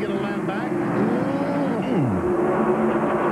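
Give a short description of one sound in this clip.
A race car zooms past close by, its engine pitch dropping.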